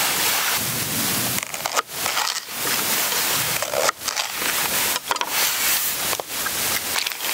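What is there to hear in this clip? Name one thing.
A knife cuts through crisp vegetables on a wooden board.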